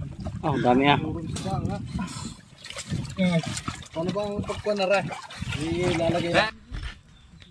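Water splashes as a fishing net is hauled up.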